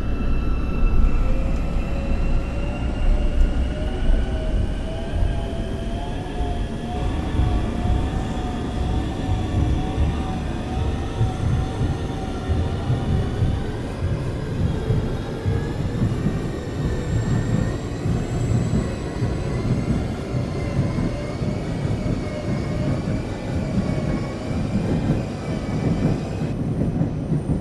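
A train's electric motor whines, its pitch slowly rising and falling.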